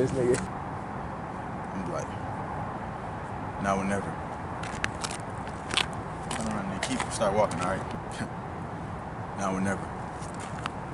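A young man speaks in short bursts close by.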